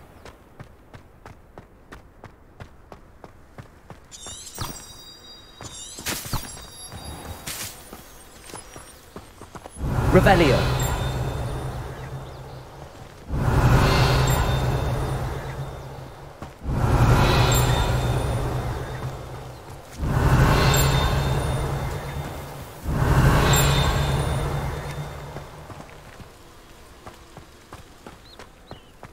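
Footsteps patter quickly on stone paving.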